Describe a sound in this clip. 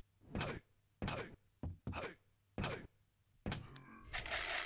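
Footsteps thud at a steady walking pace on a hard floor.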